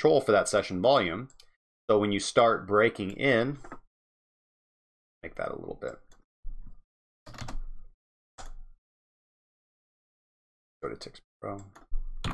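A man speaks close to a microphone, in a calm, halting way.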